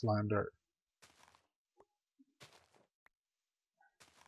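A shovel digs into soft earth with short crunching scrapes.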